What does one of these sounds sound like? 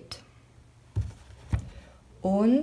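A plastic sheet taps and rattles softly against a table.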